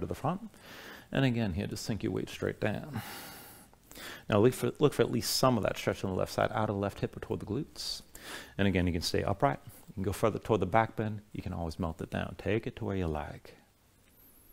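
A man speaks calmly and clearly, close to a microphone.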